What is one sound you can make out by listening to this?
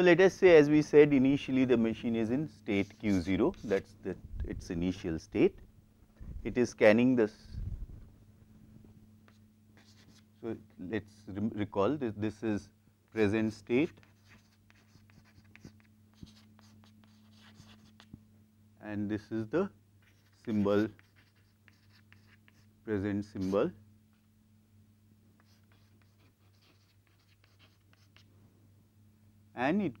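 A middle-aged man lectures calmly through a clip-on microphone, in short bursts with pauses.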